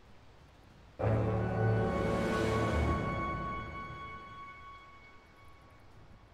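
A loud triumphant fanfare blares from a game and slowly fades.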